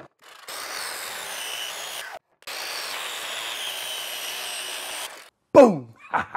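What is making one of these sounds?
A circular saw whines as it cuts through wood.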